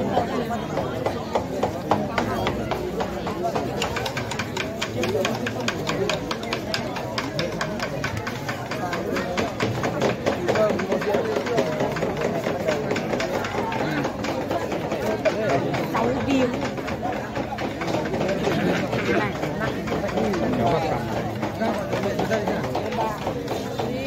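A crowd of men and women talks and calls out all around.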